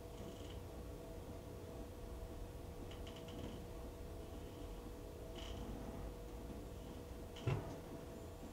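Water sloshes and splashes inside a washing machine drum.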